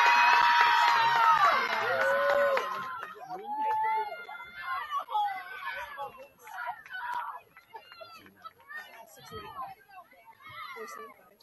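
Young women shout to each other across an open field.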